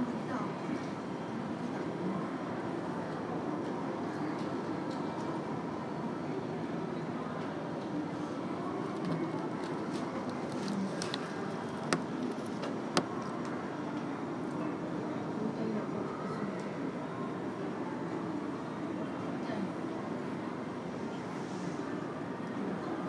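A low, steady murmur fills a large echoing hall.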